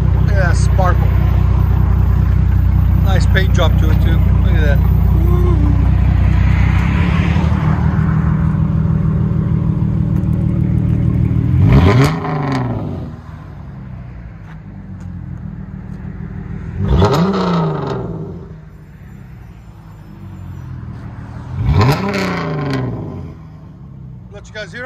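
A car engine idles with a deep, loud rumble.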